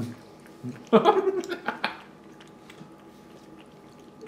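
A cat licks food from a tin.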